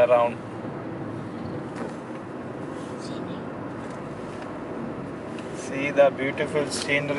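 A car engine hums steadily with road noise from inside a moving car.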